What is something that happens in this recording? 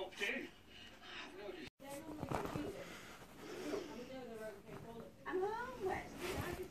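A puppy growls and yaps playfully, close by.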